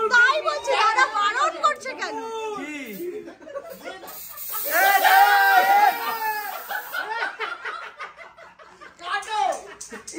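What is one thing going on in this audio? A young man laughs loudly and excitedly close by.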